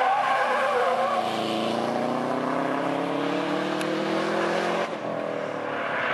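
A car engine roars as the car speeds away, rising in pitch through the gears.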